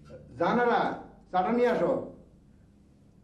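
A man speaks loudly and calmly nearby.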